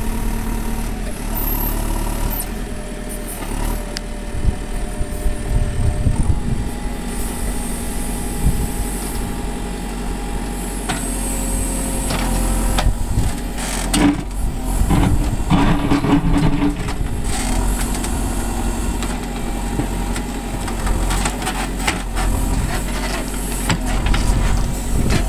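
A diesel backhoe loader's engine runs.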